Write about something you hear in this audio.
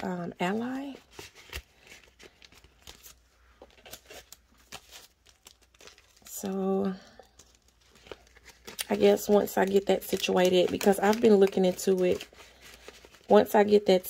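Paper bills rustle and crinkle.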